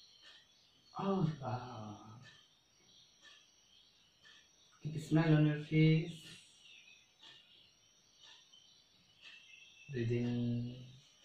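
A young man speaks calmly and slowly, close by, in short phrases with pauses.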